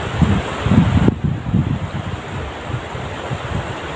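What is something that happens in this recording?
A fishing net splashes into shallow water.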